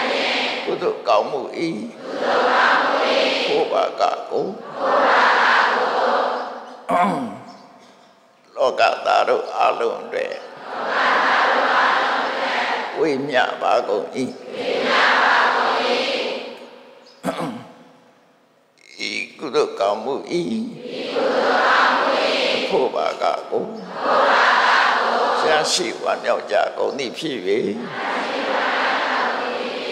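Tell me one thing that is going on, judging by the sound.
A large group of young women and girls chant together in unison, in long phrases with short pauses between them.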